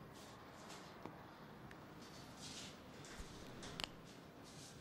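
A metal fitting clanks sharply a few times.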